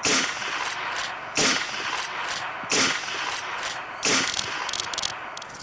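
A rifle fires several sharp shots, each followed by a rustling echo.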